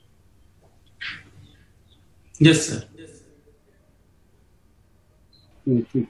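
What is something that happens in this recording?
A middle-aged man speaks calmly over an online call.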